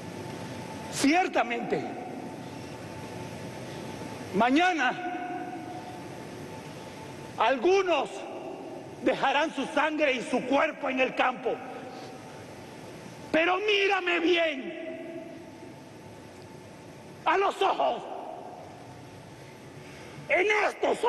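A man sings loudly in short phrases through a microphone in a large echoing hall.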